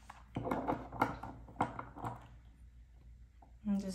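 A small plastic cap twists and clicks off a bottle.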